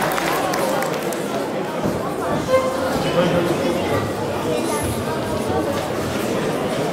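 An elderly man speaks into a microphone through loudspeakers in a large echoing hall.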